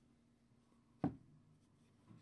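A stack of trading cards taps against a table.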